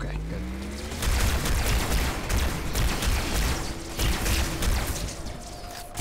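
Gunfire and explosions crackle in a fast burst.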